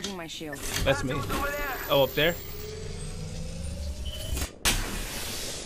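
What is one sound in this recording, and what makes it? A video game shield battery charges up with a rising electronic hum.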